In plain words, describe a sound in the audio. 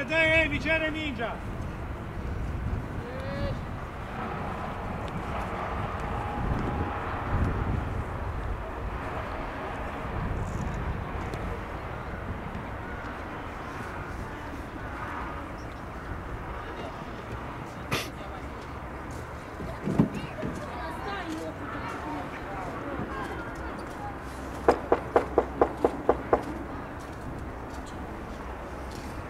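Young men shout to each other far off across an open field.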